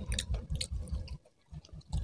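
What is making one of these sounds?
A man chews food loudly with wet smacking sounds.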